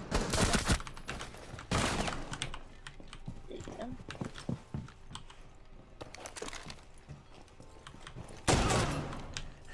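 Rifle gunshots fire in bursts.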